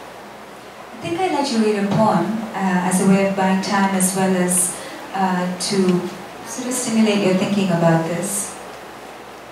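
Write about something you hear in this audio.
A young woman speaks with animation through a microphone.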